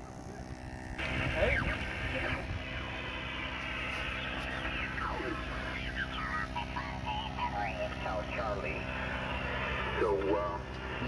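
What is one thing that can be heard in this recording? An amateur radio transceiver being tuned gives out warbling, garbled voices through its loudspeaker.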